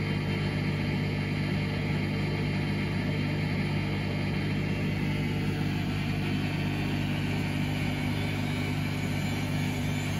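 A washing machine drum spins with a steady low hum.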